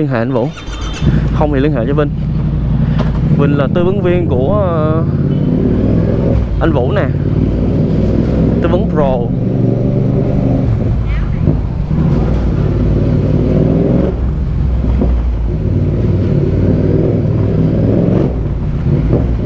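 A motorcycle engine rumbles low and steady, rising and falling as the motorcycle rides along.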